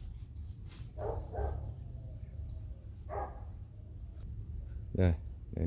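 A dog barks and yelps in short bursts nearby.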